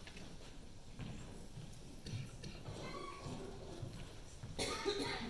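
A crowd murmurs softly in a large hall.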